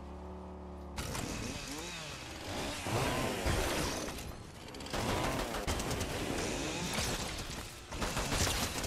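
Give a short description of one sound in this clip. A pickaxe strikes repeatedly in quick blows.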